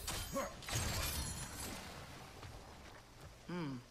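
Water bursts up with a loud gush.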